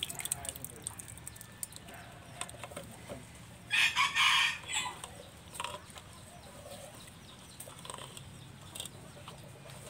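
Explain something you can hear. Wet rice scrapes and squelches against a metal pot.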